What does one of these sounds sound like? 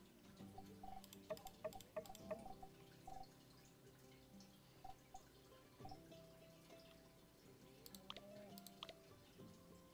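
Soft menu clicks and chimes tick quickly.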